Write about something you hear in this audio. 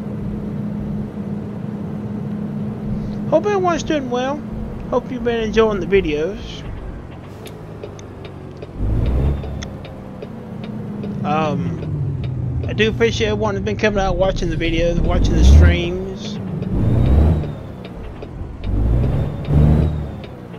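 A truck engine hums steadily as it drives along a road.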